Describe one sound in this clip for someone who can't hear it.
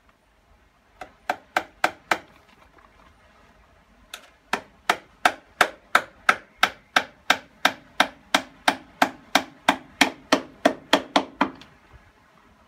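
A hammer strikes metal in quick, steady, ringing blows.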